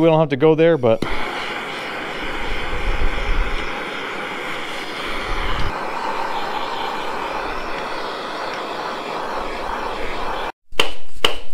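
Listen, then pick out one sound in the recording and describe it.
An aerosol can sprays with a steady hiss.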